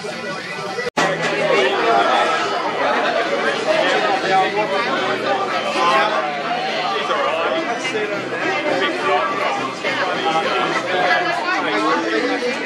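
A large crowd of young people chatters and shouts outdoors.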